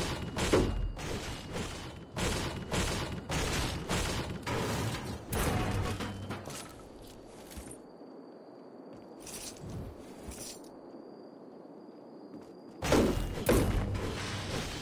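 A pickaxe strikes wood with rapid knocks.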